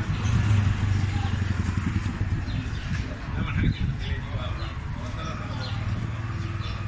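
Traffic rumbles steadily nearby outdoors.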